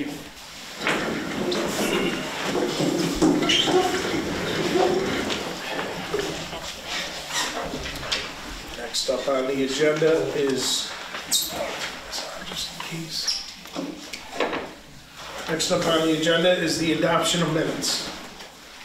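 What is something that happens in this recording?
A man speaks through a microphone in a room with some echo.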